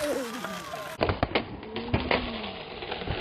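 A skateboard clatters and knocks on concrete.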